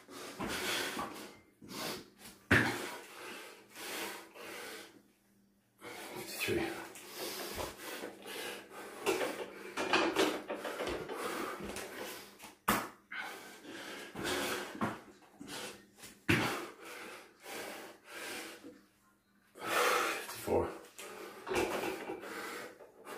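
Bare feet thump and shuffle on a floor mat.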